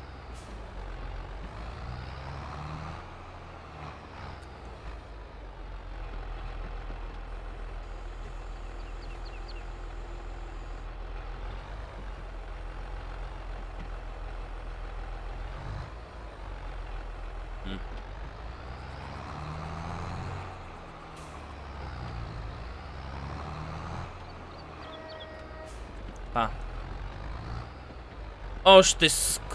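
A tractor engine rumbles steadily and revs up and down.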